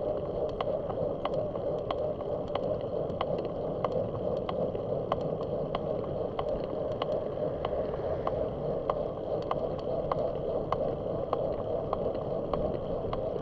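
Wind rushes and rumbles steadily while moving along a road outdoors.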